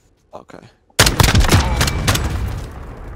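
An assault rifle fires a rapid burst.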